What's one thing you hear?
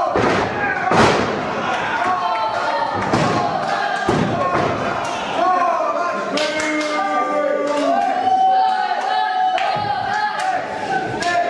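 Bodies slam onto a ring mat with heavy thuds.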